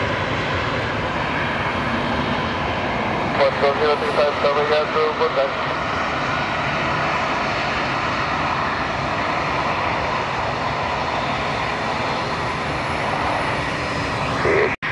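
A jet airliner's engines roar steadily as it lands.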